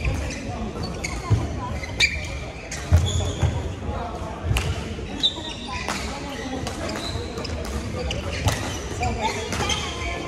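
Shuttlecocks are struck with rackets with sharp pops in a large echoing hall.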